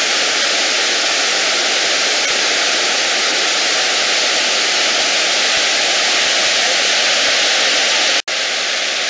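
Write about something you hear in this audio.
Water rushes loudly over a weir and rapids.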